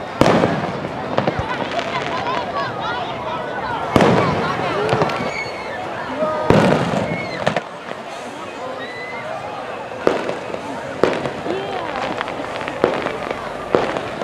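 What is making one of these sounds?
A crowd of people chatters and cheers nearby.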